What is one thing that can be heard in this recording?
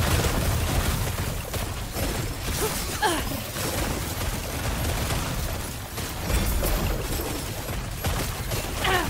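Low booms rumble from explosions.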